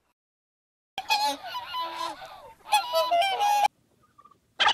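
Swans honk and call.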